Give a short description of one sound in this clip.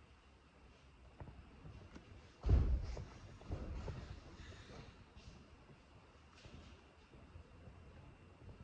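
Fingers tap lightly on a table.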